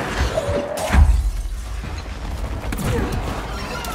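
Debris crashes and scatters loudly.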